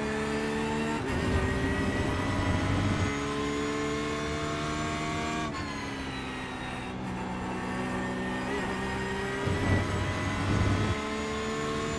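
Tyres rumble over kerbs.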